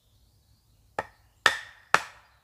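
A wooden pole thuds against the ground.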